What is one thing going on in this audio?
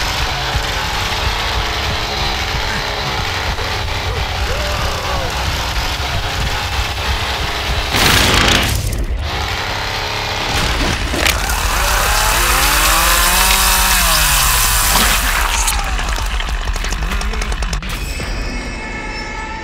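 A chainsaw engine revs and roars.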